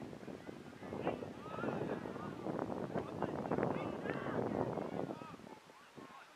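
Spectators cheer and shout from the sideline.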